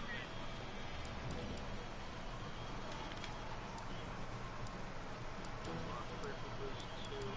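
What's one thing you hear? Short menu ticks sound as selections change.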